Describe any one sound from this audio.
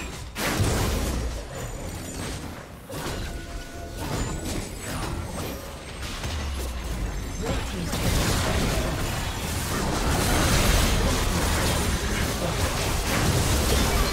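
Blows and explosions thud in quick succession.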